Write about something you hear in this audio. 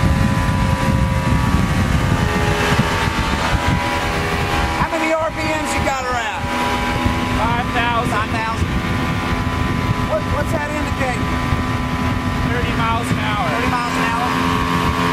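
A motorboat engine roars steadily.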